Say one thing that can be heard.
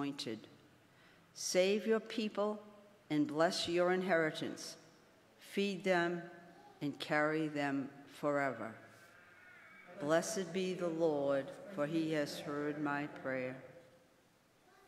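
An elderly woman reads aloud through a microphone, in a room with a slight echo.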